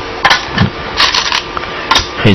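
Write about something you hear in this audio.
Stones rattle and clack in a bowl.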